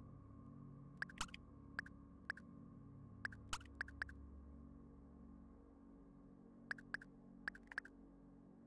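Short, high menu blips sound as a selection cursor moves through a list.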